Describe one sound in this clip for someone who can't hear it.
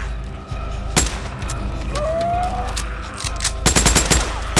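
A pistol fires several sharp shots outdoors.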